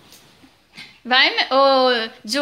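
A small dog whines in high, wavering yelps.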